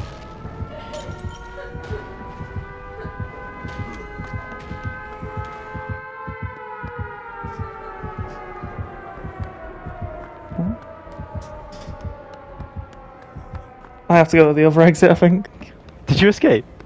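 Quick footsteps thud across a hard floor.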